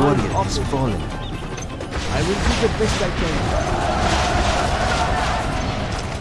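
Rockets whoosh through the air.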